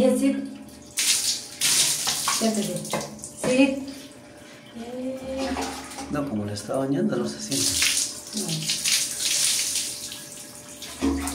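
Water splashes from a bowl onto a dog.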